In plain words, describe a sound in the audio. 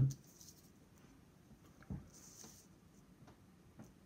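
Plastic pieces slide across paper on a table.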